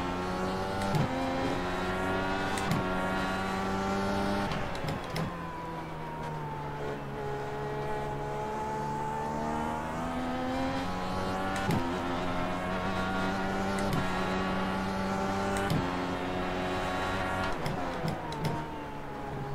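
Gears shift with sharp clicks.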